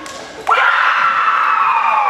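A group of young women cheer together in a large echoing hall.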